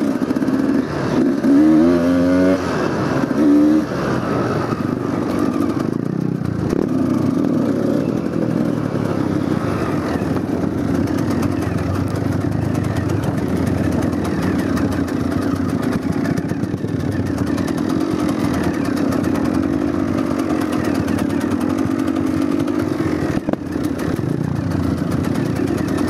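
A dirt bike engine drones steadily up close.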